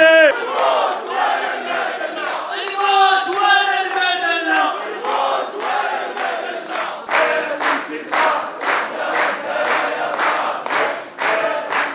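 A large crowd chants and sings loudly together in a big hall.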